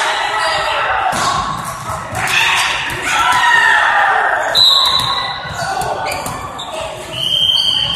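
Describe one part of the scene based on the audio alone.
Several men call out and talk in a large echoing hall.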